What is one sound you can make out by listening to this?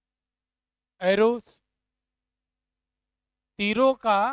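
A man speaks in a clear, teaching voice close to a microphone.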